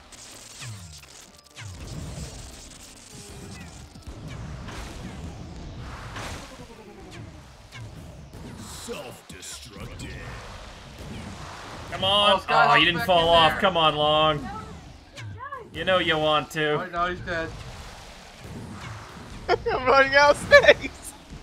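Cartoonish bursts and pops go off again and again.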